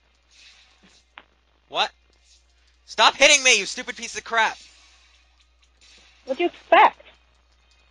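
A sword swishes and strikes repeatedly.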